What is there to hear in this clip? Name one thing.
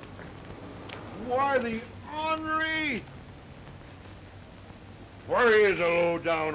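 A middle-aged man talks outdoors.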